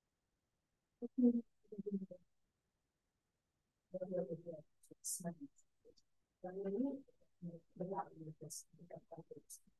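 An elderly woman talks calmly over an online call.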